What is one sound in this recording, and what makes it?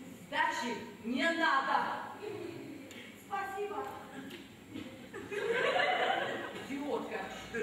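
A second woman answers loudly and emotionally.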